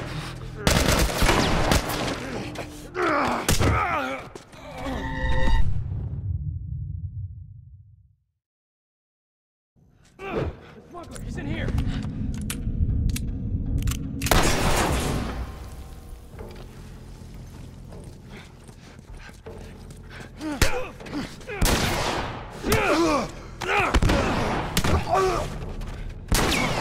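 A man grunts and shouts while struggling.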